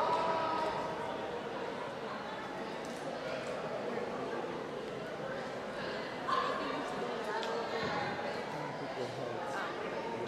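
A group of teenagers chatter together in a large echoing hall.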